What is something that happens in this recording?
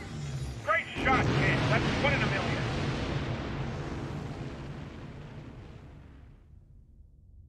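A huge explosion booms and slowly rumbles away.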